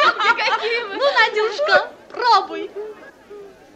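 Young women laugh and talk excitedly, close by.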